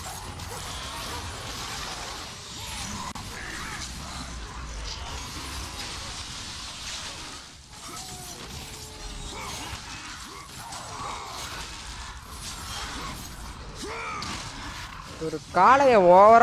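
Chained blades whoosh and slash, striking flesh again and again.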